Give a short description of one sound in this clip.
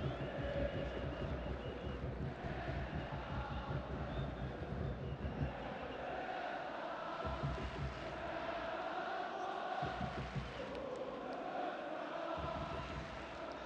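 A large crowd chants and sings loudly in a stadium.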